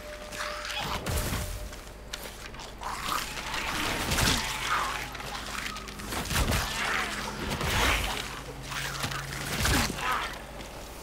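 Gunshots boom, heavy and repeated.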